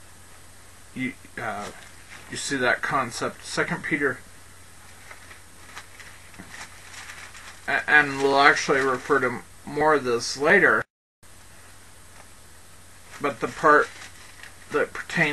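A man speaks slowly and calmly, close to a microphone, in bursts with pauses.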